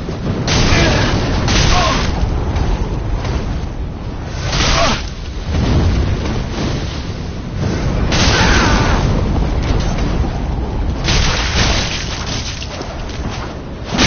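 Fireballs roar and burst in loud fiery blasts.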